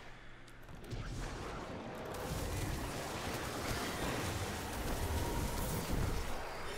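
Gunfire and explosions crackle in a video game.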